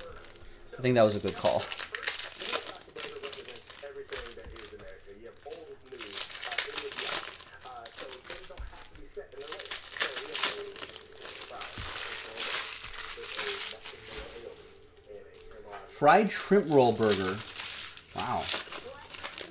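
A plastic card wrapper crinkles and rustles in hands.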